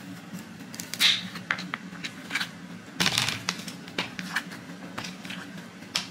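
Sweet potato slices are slid and dropped into a plastic colander.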